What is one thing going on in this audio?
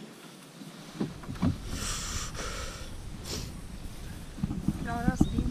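Water sloshes around a kayak's hull.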